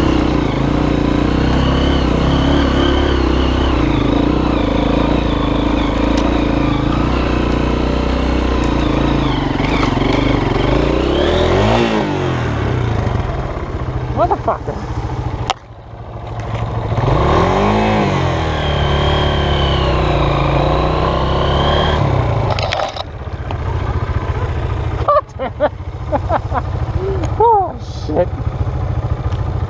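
A dirt bike engine revs and sputters close by, rising and falling.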